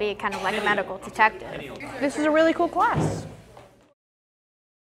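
A young girl speaks cheerfully close by.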